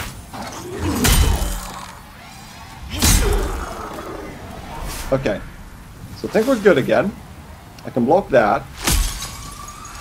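A heavy sword swings and strikes with deep thuds.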